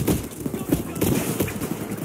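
An explosion booms close by.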